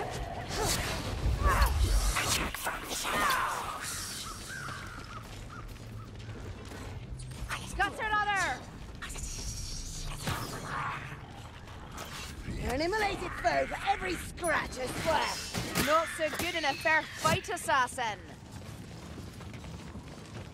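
Blades whoosh through the air and clash with metallic hits.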